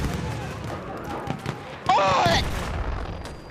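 A submachine gun fires in short bursts.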